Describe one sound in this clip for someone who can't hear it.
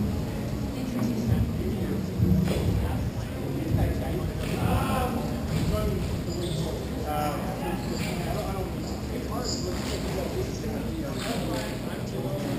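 A hockey stick taps and knocks on a hard floor in a large echoing hall.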